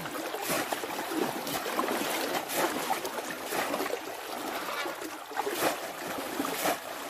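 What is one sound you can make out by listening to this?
Feet wade and splash through shallow water.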